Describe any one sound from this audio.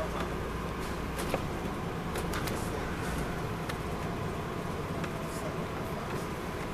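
A diesel coach bus engine drones from inside the cabin as the bus cruises.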